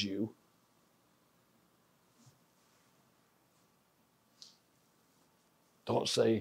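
An elderly man speaks nearby, pausing at length between words.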